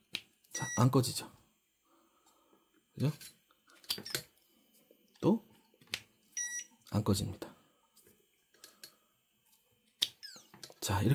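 Plastic plugs click and knock together.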